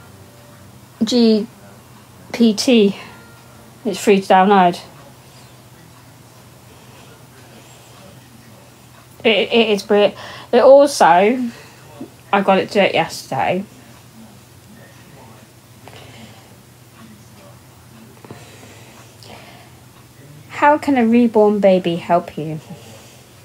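A middle-aged woman speaks casually, close to a phone microphone, in short bursts with pauses.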